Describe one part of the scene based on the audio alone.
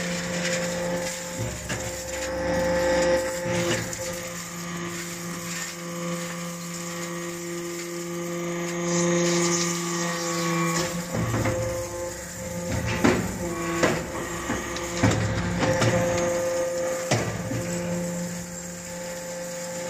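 Metal shavings patter and clatter into a metal bin.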